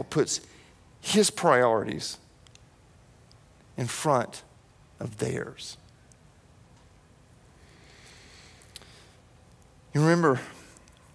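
A man speaks with emphasis into a microphone, in short bursts with pauses.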